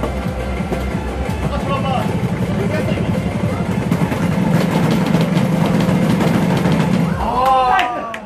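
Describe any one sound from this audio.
Loud dance music with a thumping beat plays from an arcade machine.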